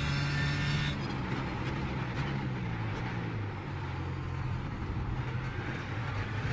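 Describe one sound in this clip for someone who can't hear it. The engine whines down as the car brakes hard.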